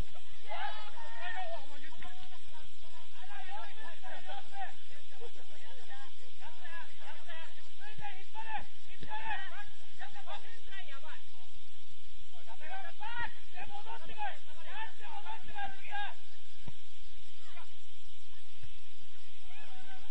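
Young players shout and call to each other outdoors.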